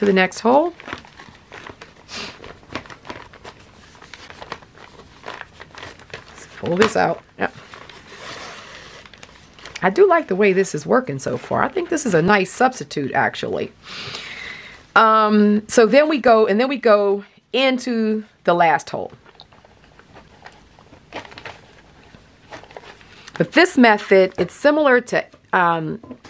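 Thread rasps as it is pulled through paper.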